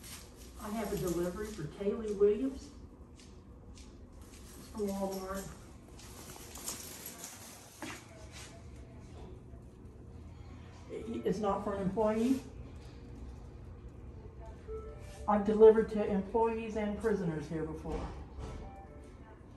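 A woman speaks calmly nearby, in short bursts.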